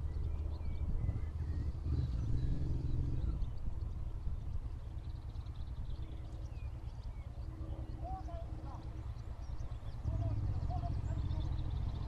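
A motorbike engine drones as it approaches along a distant road.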